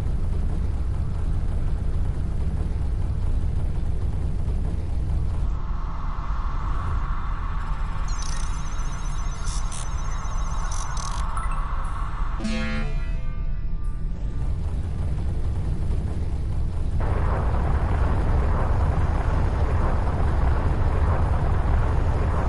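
A spaceship engine hums and roars steadily.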